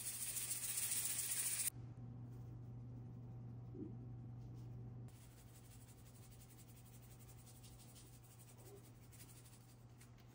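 A shaker rattles as seasoning is sprinkled.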